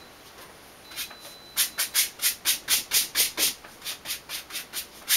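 A stiff brush dabs and scrubs rapidly against foam.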